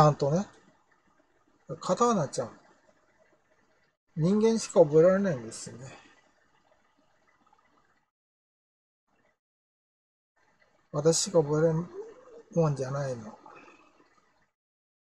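An elderly man speaks calmly in short phrases close to a microphone, with pauses.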